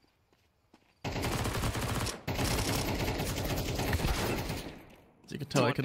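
A rifle fires in rapid bursts at close range.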